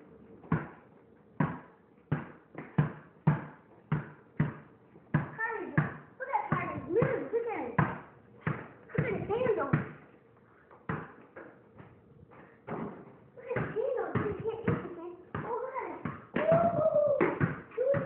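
A ball bounces on a hard floor.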